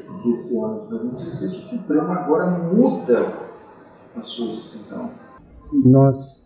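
A middle-aged man speaks calmly and steadily into a close microphone.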